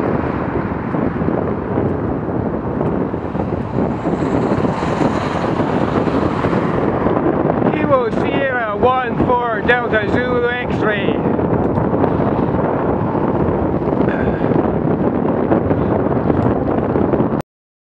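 Wind rushes past a moving microphone.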